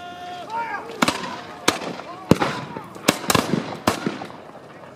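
Muskets fire in a ragged volley outdoors, each shot booming sharply.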